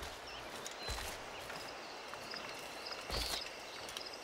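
Footsteps run over soft ground.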